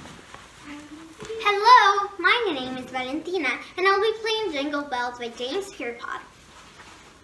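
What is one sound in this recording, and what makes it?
A young girl speaks calmly and clearly, close by.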